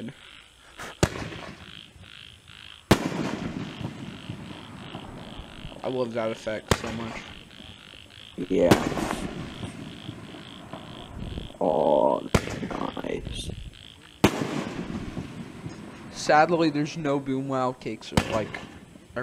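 Fireworks shells bang loudly in the sky, one after another.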